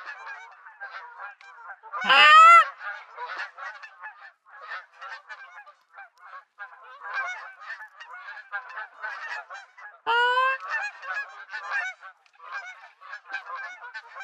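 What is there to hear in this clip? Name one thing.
A flock of geese honks and cackles.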